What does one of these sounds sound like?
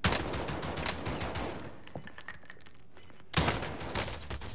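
A rifle fires several quick shots.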